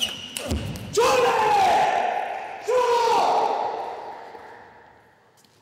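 A young man shouts loudly in triumph, twice, in an echoing hall.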